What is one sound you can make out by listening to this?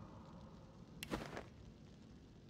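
A heavy book snaps shut with a papery thump.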